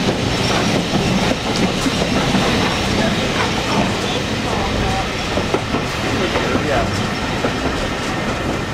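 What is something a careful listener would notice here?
A train rumbles and clatters steadily along the track.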